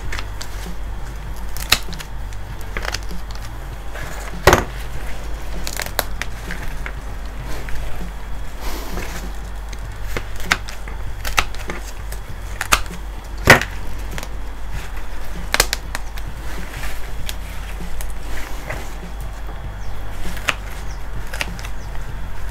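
Gloved hands rustle and crackle through dry roots and soil close by.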